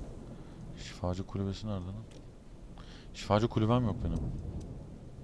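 A man speaks with animation into a nearby microphone, in short bursts.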